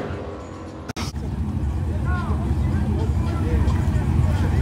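A truck engine rumbles loudly at idle.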